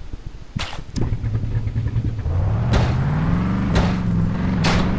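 An eight-wheeled off-road truck engine revs up.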